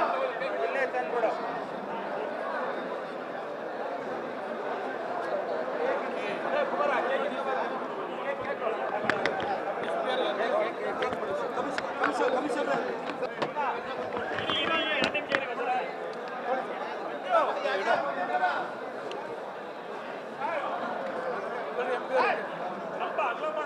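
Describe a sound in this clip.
A crowd of men chatters and talks loudly all around, close by.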